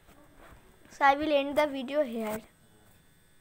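A young boy speaks close to the microphone in a high, lively voice.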